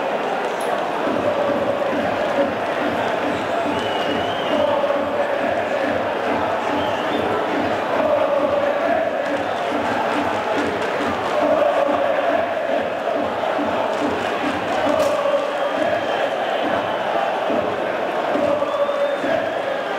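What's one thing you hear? A crowd of fans claps in rhythm.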